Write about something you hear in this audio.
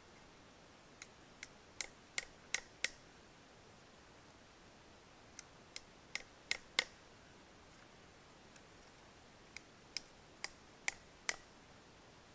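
Small metal nails clink sharply against each other in bursts.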